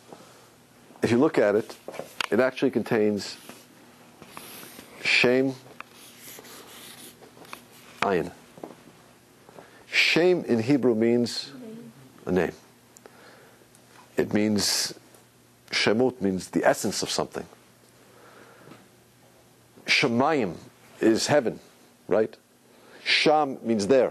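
A young man speaks with animation to a room, in bursts with pauses.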